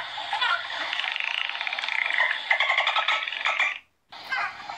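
A dolphin makes rapid clicking bursts.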